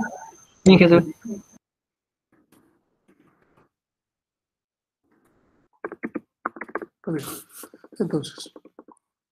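A second young man speaks calmly over an online call.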